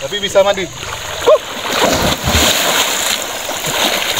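Water splashes loudly as a young man dives and swims.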